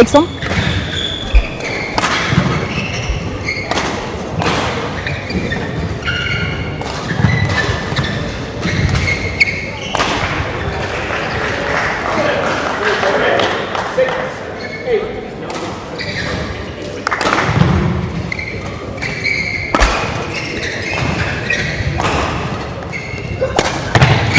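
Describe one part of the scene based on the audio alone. Shoes squeak on a sports floor.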